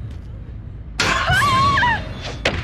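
A wooden locker door bangs open.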